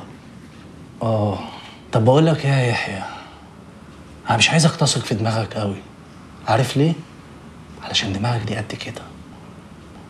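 A younger man speaks with animation, close by.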